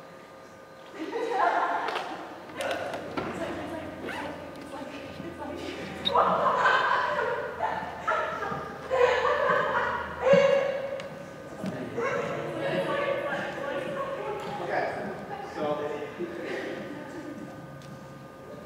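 Young people talk and call out in a large echoing hall.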